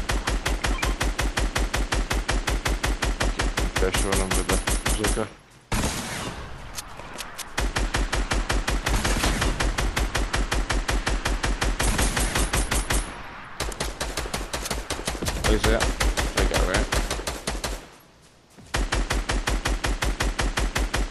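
A rifle fires in long rapid bursts.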